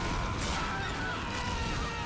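Rockets explode with sharp blasts.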